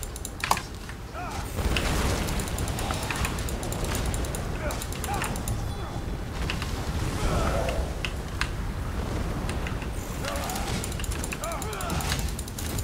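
Fiery blasts burst and crackle repeatedly.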